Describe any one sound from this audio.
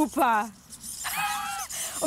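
A young woman laughs brightly.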